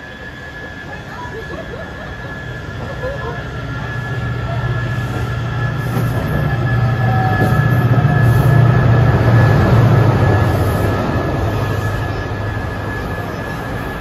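A subway train rumbles into the station and slows to a stop.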